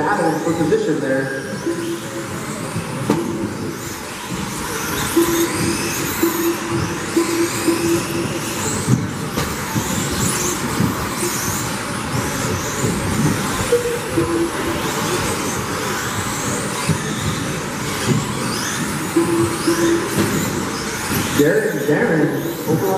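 Model car tyres scrub and skid on the track surface.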